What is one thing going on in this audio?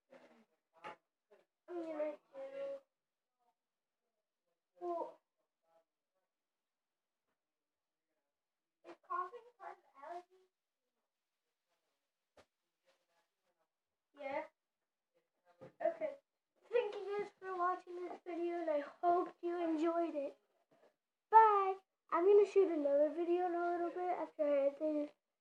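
A young girl talks close by, in short bursts at first and then at length.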